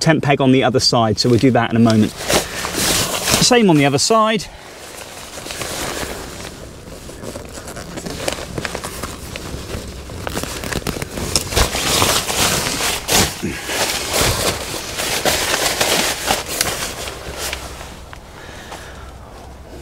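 Nylon fabric rustles and crinkles as hands move it.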